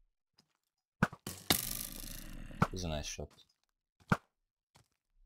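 A bow twangs as arrows fire.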